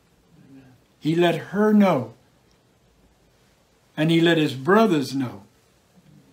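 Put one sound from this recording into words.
An older man speaks slowly and earnestly into a close microphone.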